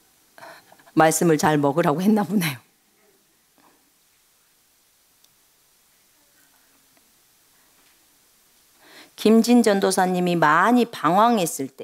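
A middle-aged woman speaks expressively into a microphone, close by.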